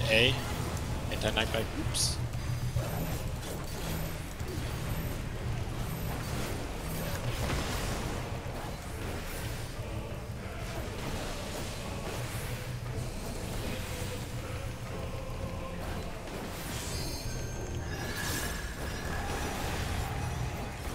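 Game spell effects whoosh and chime during a battle.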